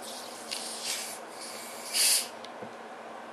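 Gas hisses sharply as a plastic bottle cap is twisted open.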